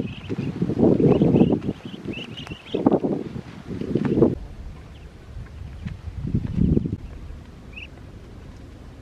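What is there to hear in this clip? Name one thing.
Ducklings peep nearby.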